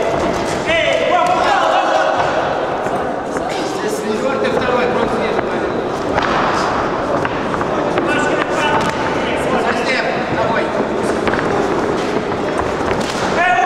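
Spectators shout and cheer in an echoing hall.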